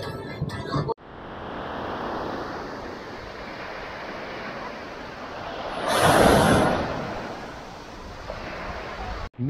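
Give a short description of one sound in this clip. Waves wash onto a shingle beach.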